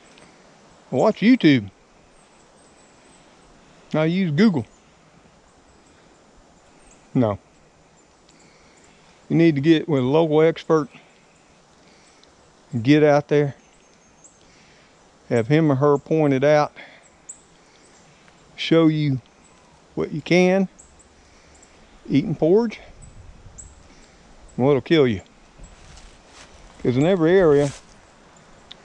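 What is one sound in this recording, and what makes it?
An older man talks calmly and close by in short bursts with pauses.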